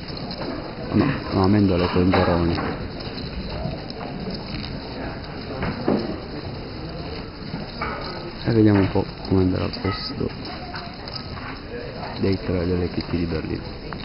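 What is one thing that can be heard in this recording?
A crowd murmurs steadily in a large hall.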